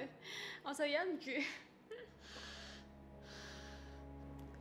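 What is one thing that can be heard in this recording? A young woman sobs.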